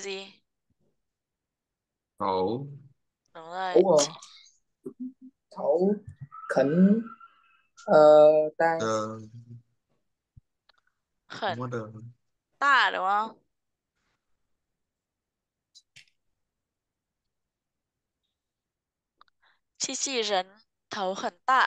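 A woman speaks slowly and clearly through an online call, with pauses.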